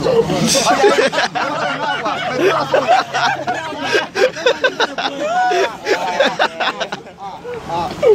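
A young man laughs loudly close by.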